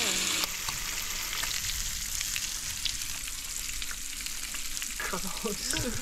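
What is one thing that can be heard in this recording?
A fork scrapes and clinks against a metal pot while whisking eggs.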